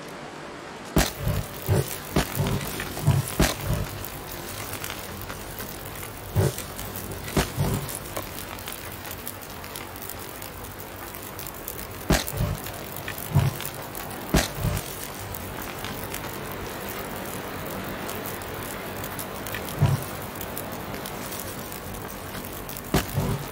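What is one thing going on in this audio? A fire crackles and roars softly in a wood stove.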